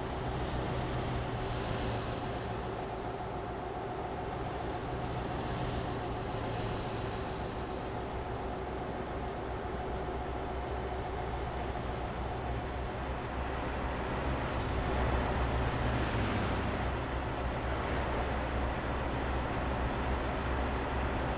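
A heavy truck engine hums steadily as the truck drives along a road.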